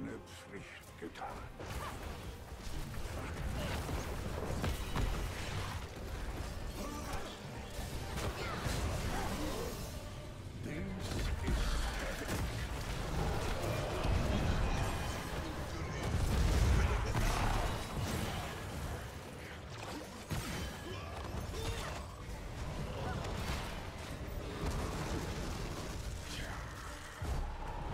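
Game spells crackle and blast in a busy fight.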